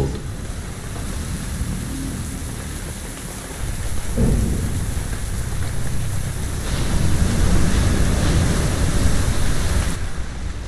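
Armored footsteps clank on a metal walkway.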